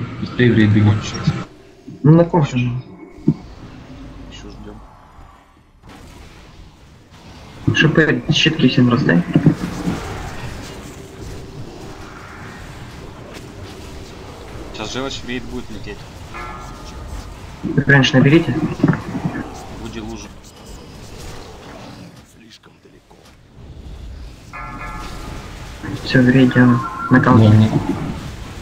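Spells whoosh and crackle in a battle against a large monster.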